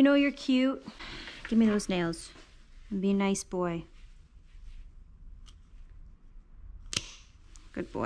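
Nail clippers snip a dog's claws with sharp clicks.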